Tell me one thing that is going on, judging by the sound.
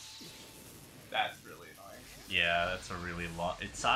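Electricity crackles and sizzles loudly.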